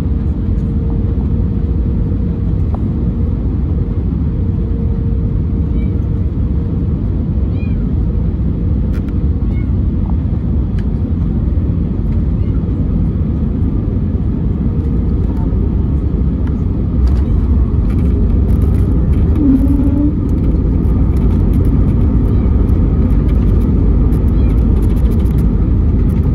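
A jet airliner's engines roar, heard from inside the cabin.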